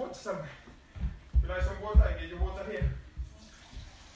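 Bare feet thump on a carpeted floor.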